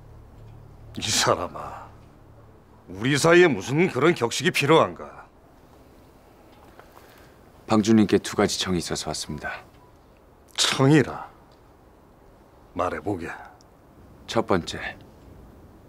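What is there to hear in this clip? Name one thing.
An elderly man speaks calmly and warmly, close by.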